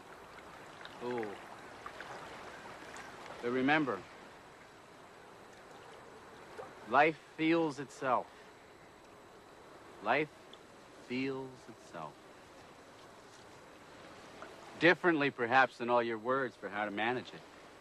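A man speaks slowly and softly, close by, with long pauses.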